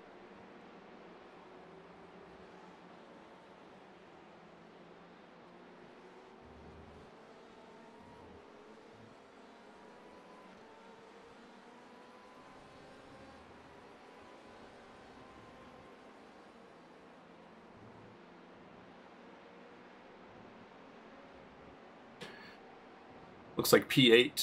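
Race car engines drone faintly in the distance, rising and falling in pitch.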